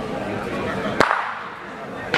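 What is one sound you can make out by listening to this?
A ball knocks sharply against other balls.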